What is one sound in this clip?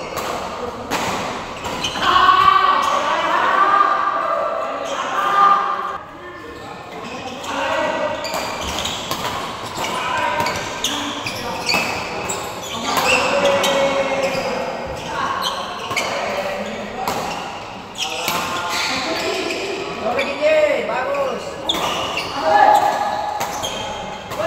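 Shuttlecocks are struck sharply by rackets, again and again.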